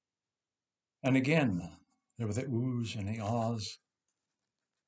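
An elderly man speaks calmly through a microphone on an online call.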